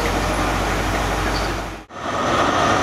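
A diesel train engine rumbles loudly nearby.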